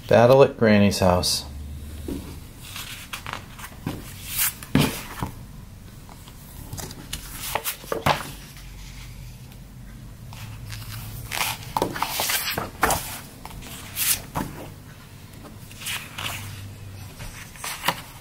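Glossy paper pages rustle and flap as a booklet is handled.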